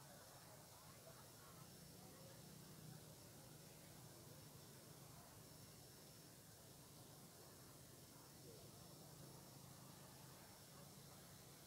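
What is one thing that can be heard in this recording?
Traffic hums steadily in the distance outdoors.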